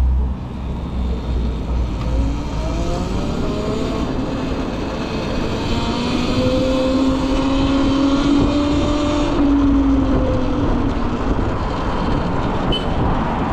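Traffic hums along a busy city street.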